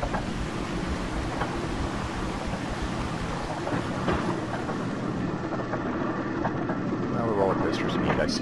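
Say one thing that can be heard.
A roller coaster car rumbles and clatters steadily along its track.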